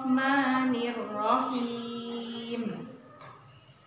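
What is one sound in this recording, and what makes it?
A woman chants a recitation in a slow, melodic voice close to a microphone.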